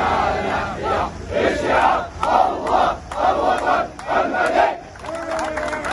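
A crowd of men and women chant loudly in rhythmic bursts outdoors.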